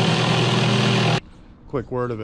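A jigsaw buzzes loudly through wood.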